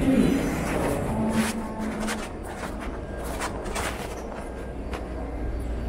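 A subway train rumbles steadily along its track.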